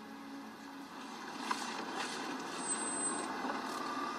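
A truck engine revs and the truck drives off.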